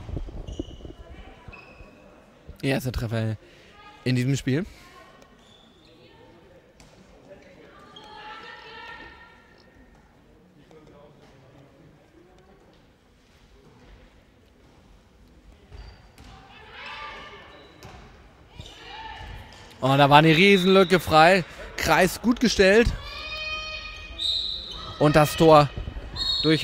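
A ball bounces on a hard floor in an echoing hall.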